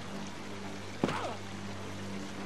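A heavy thud sounds as someone lands from a jump.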